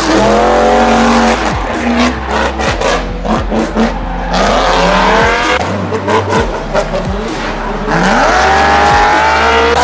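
Tyres squeal on tarmac as a car drifts.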